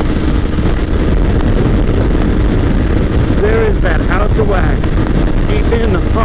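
A motorcycle engine hums steadily while cruising.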